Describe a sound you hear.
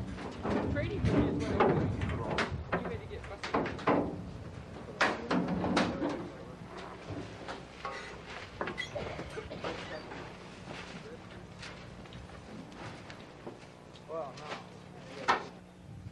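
A metal canoe bangs and clanks as it is lifted.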